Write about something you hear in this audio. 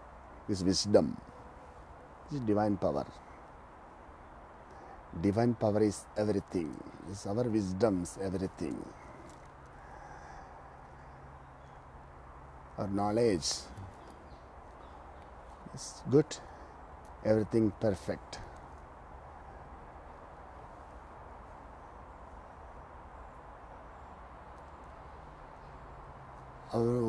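A man speaks calmly close by, in short phrases with pauses.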